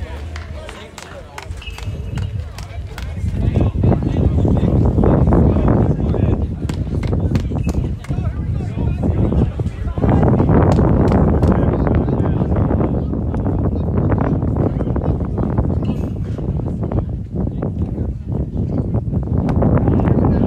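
A baseball smacks into a catcher's mitt in the distance.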